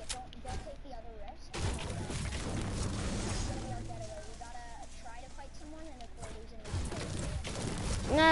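A pickaxe strikes a tree trunk with repeated thuds.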